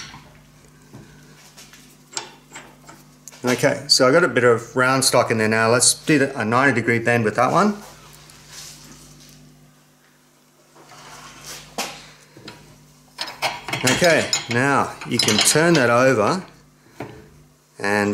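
A metal rod bender clicks and clanks as its lever is worked.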